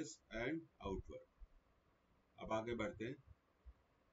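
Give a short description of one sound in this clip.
A man speaks calmly through a microphone, in short bursts.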